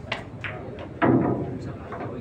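A cue strikes a pool ball with a sharp crack.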